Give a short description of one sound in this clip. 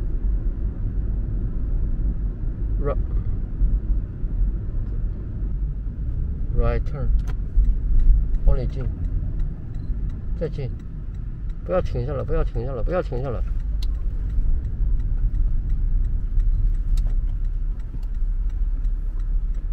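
A car drives along a road with a low steady rumble.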